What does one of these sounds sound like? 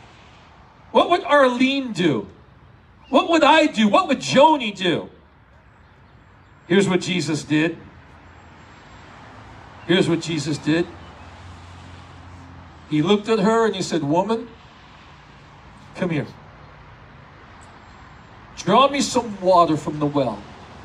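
A middle-aged man speaks with animation through a microphone, in short bursts with pauses.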